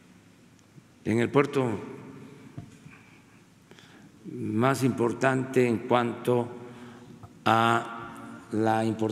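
An elderly man speaks slowly and deliberately into a microphone, in a room with some echo.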